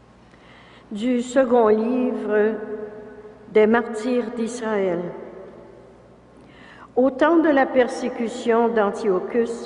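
An elderly woman reads out calmly through a microphone in a large echoing hall.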